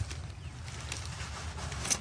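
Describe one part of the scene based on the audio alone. A plastic bag crinkles in a hand.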